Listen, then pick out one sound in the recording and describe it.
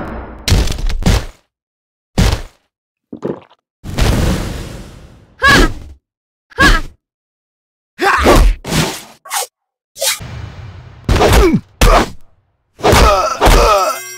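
Fighters' blows land with sharp thuds and whooshes.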